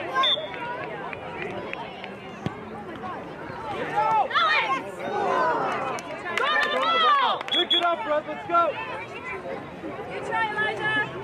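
Spectators nearby shout and cheer loudly outdoors.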